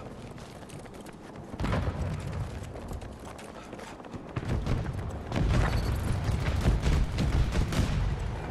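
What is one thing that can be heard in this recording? Rapid gunfire crackles in bursts.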